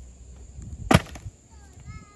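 A heavy log thuds onto the ground.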